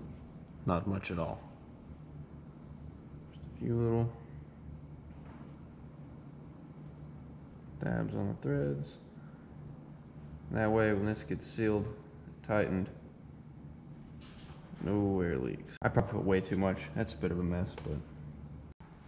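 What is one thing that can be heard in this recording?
A young man talks calmly close by, in a large echoing space.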